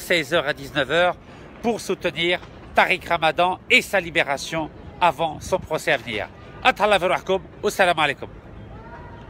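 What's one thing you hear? A middle-aged man talks with animation close to a phone's microphone.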